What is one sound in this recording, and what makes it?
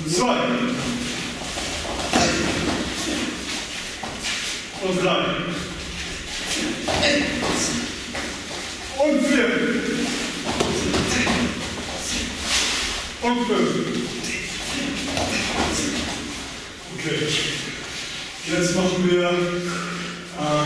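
A man calls out instructions loudly in an echoing hall.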